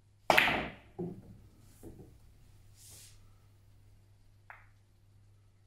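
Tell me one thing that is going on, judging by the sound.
Billiard balls knock against each other and the cushions.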